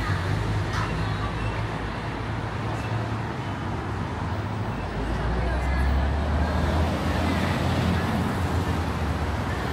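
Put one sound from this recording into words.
Traffic rumbles steadily along a city street outdoors.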